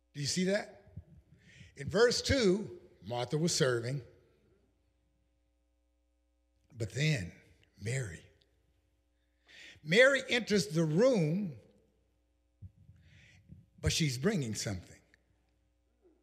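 An older man preaches with animation into a microphone, in bursts with pauses.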